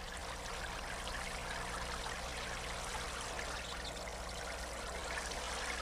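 Water sprays steadily from a shower head.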